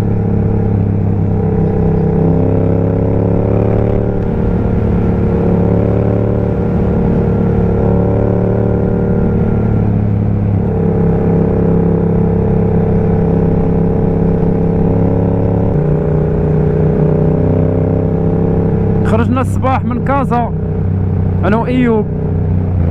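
A motorcycle engine hums steadily up close, shifting pitch as it changes gear.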